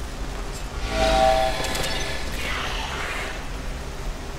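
Bright electronic chimes ring out as a game puzzle lights up.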